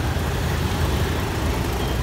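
Motorbike engines idle nearby.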